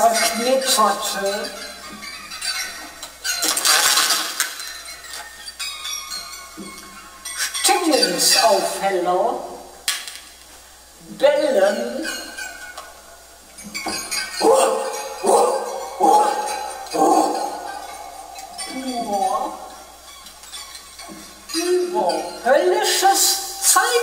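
A man sings close to a microphone.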